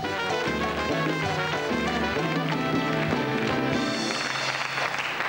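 A band plays music with drums and cymbals.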